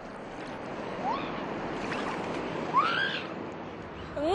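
Young women laugh and shriek playfully.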